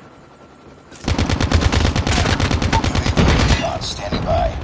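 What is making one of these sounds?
A video game automatic rifle fires rapid bursts.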